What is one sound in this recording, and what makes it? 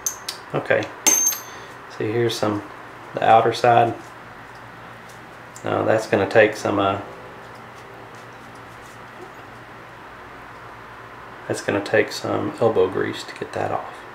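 Small metal parts click softly against each other.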